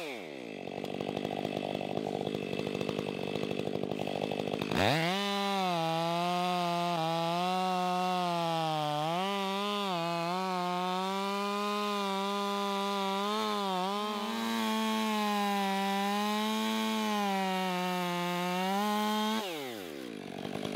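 A chainsaw idles with a low, rattling putter.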